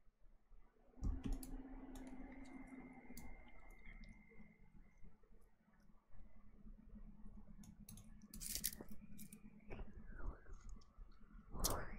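A young woman makes soft mouth sounds close to a microphone.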